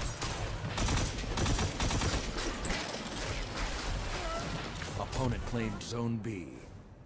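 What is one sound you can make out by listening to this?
Rapid gunshots crack in quick bursts.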